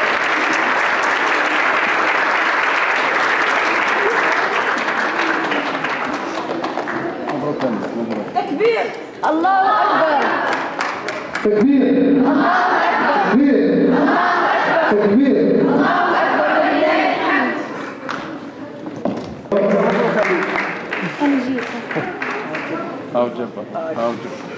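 A crowd of people talk and call out nearby.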